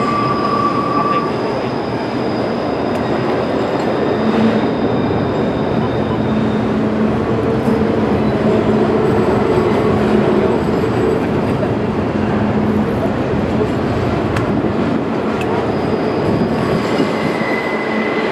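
A long freight train rumbles steadily over a bridge.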